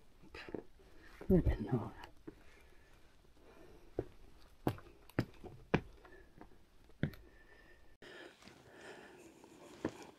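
Footsteps crunch and scuff on rocky ground.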